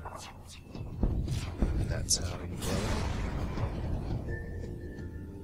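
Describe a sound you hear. An explosion booms and rumbles.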